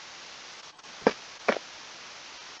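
A wooden chest lid thumps shut.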